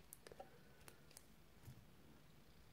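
A watch strap buckle clicks softly.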